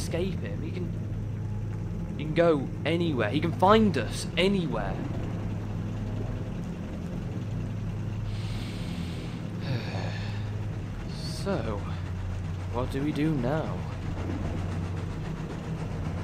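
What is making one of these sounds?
A steam engine hums low and steadily at idle.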